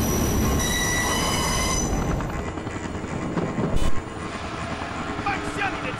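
A helicopter's rotor thuds overhead with a low roar.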